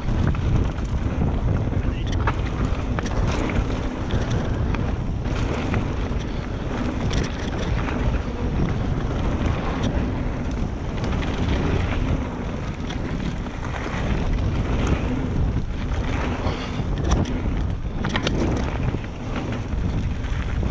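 Wind rumbles loudly and steadily against a helmet microphone.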